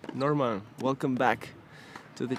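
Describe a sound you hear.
A racket strikes a tennis ball.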